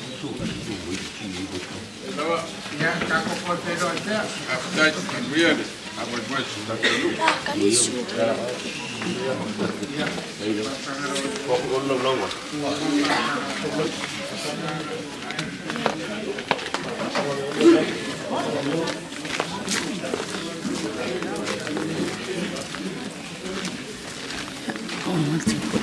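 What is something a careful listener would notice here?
A crowd of men and women talks and murmurs nearby.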